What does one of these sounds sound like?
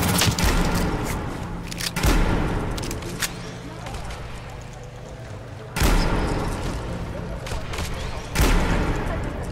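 A rifle fires sharp shots that boom and echo.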